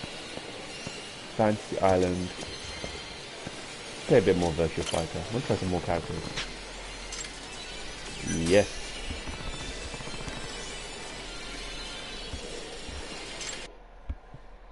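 Arcade machines play bright electronic jingles and chimes.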